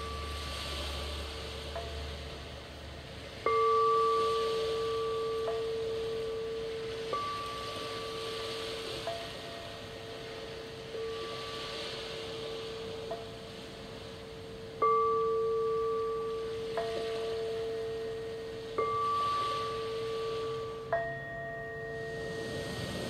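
Crystal singing bowls are struck softly and ring with long, sustained tones that slowly fade.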